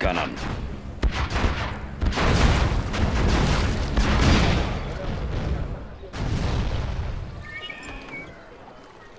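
Loud explosions boom and rumble.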